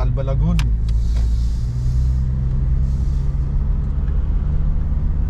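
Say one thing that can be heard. A car engine hums and tyres rumble on the road, heard from inside the car.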